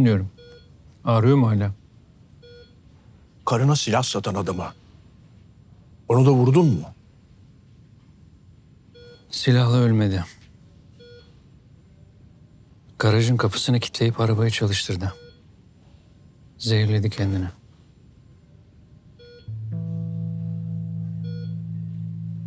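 A heart monitor beeps softly at a steady pace.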